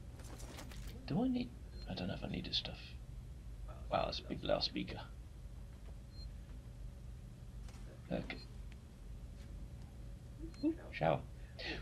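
A young man talks casually into a microphone close by.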